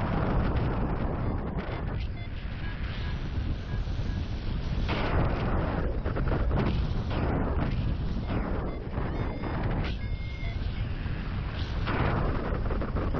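Wind rushes loudly and gusts past.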